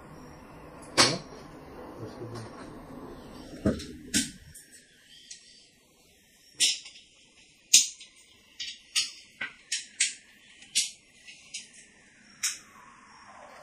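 Plastic game tiles click and clack against each other on a table.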